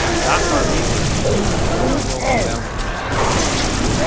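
Energy weapons crackle and explode.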